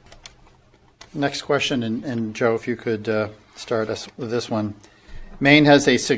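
A middle-aged man speaks into a microphone, reading out calmly.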